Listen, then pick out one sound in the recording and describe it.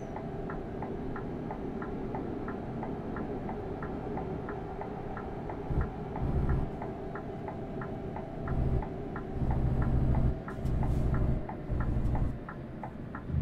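A truck engine hums steadily, swelling louder at times.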